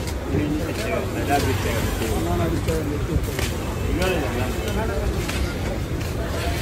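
Many men and women chatter nearby.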